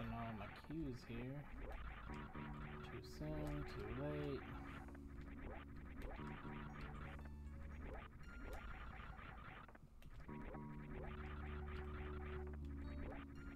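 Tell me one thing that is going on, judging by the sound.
Retro video game music plays steadily.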